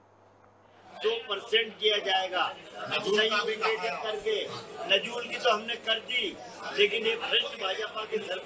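A middle-aged man talks with animation close to several microphones.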